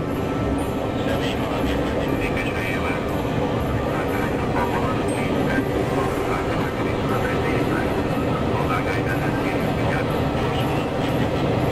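Train wheels squeal on the rails.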